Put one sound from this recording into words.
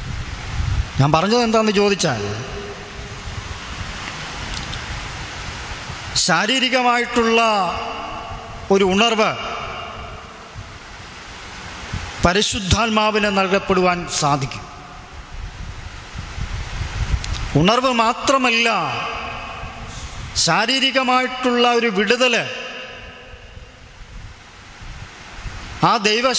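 A man sings slowly and with feeling into a close microphone, in long drawn-out phrases with pauses between them.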